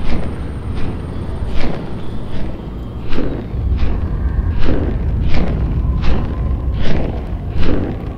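Large wings beat with regular whooshing flaps.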